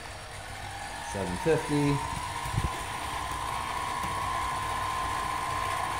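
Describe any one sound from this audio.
A small lathe motor spins up and settles into a steady whine.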